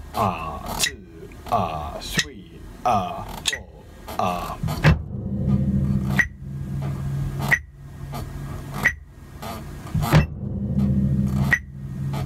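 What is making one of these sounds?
A bass drum thumps in a steady beat under a foot pedal.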